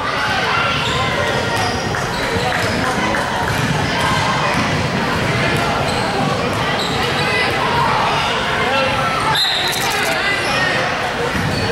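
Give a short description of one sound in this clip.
A crowd of people chatters and shouts in an echoing hall.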